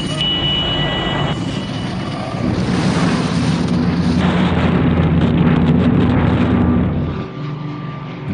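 Wind rushes past loudly during a free fall.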